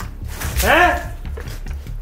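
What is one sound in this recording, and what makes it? Water splashes onto a man.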